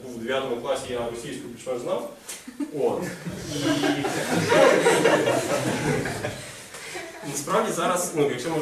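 A young man speaks with animation to an audience.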